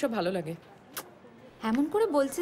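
A young woman speaks in reply.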